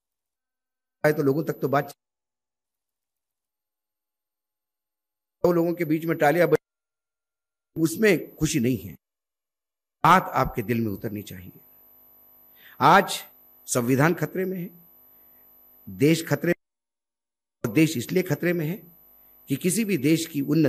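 A man speaks forcefully into a microphone in bursts, with pauses between phrases.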